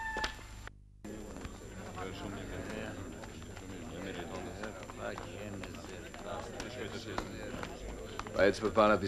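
Several men murmur in the background.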